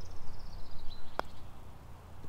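A putter taps a golf ball softly.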